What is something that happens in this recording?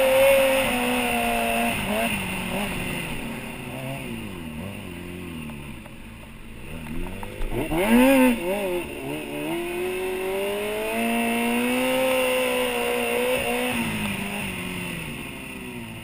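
A motorcycle engine revs up and down loudly, close by.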